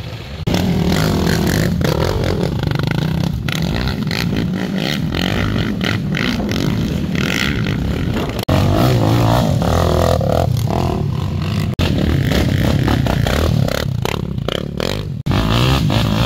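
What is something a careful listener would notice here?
A quad bike engine revs hard and roars up close.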